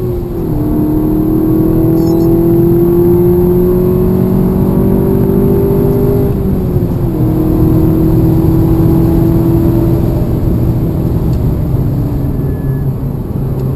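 Wind rushes loudly past the car.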